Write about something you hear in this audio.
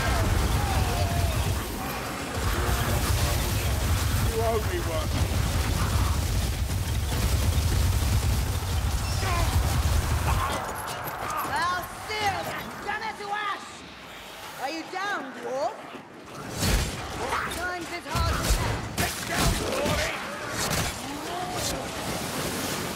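Blades slash and strike with sharp, heavy impacts.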